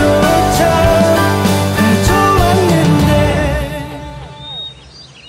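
A band plays loud pop music with electric guitars and drums.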